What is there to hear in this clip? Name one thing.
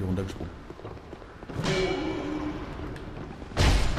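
A weapon strikes an enemy with a heavy thud.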